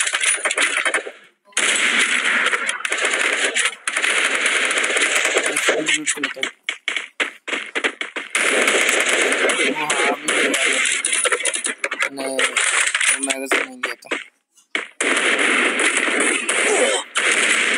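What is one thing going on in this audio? A sniper rifle fires a sharp shot.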